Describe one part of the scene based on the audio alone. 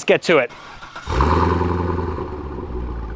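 A sports car engine starts up with a loud roar.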